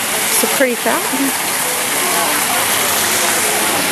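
Water splashes steadily in a fountain.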